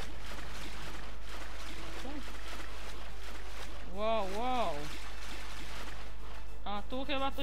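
Water splashes softly as a swimmer paddles along.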